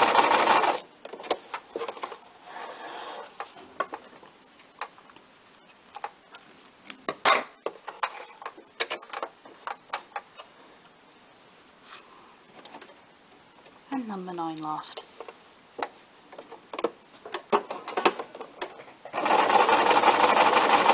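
A sewing machine runs fast, stitching with a rapid whirring rattle.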